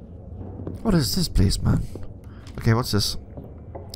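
Paper rustles as a note is picked up.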